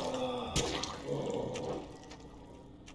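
A creature collapses into a wet, sloppy splatter.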